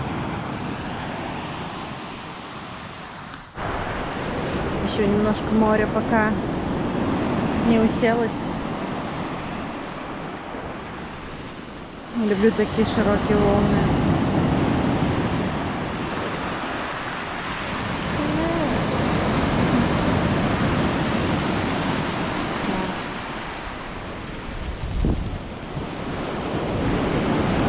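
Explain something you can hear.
Waves wash and roar onto a pebble beach.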